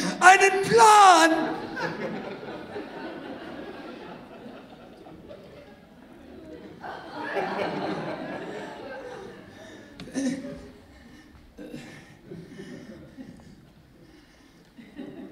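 A woman sings loudly and with energy through a microphone in an echoing hall.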